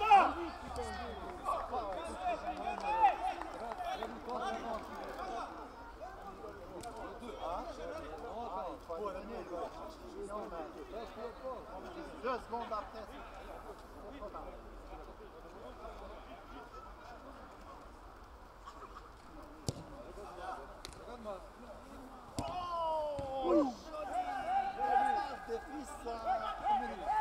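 Spectators chatter and call out outdoors.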